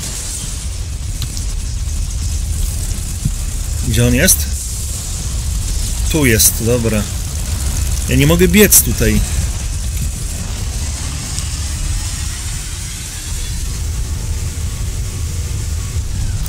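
Steam hisses from leaking pipes.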